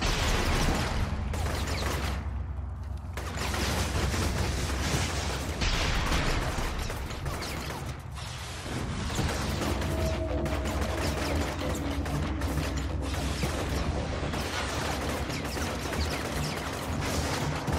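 Gunfire cracks in bursts.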